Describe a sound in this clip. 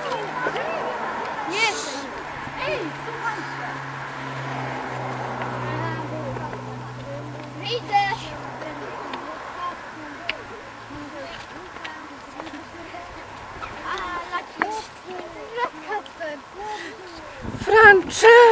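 Children chatter and call out outdoors.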